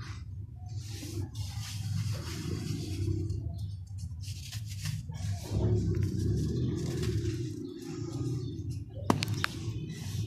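Fine sand pours and patters down.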